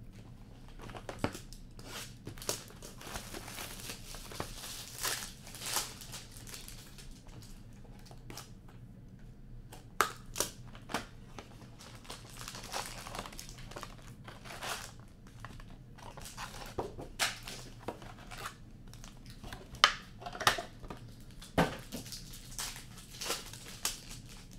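Card packs and cardboard clack and rustle on a table.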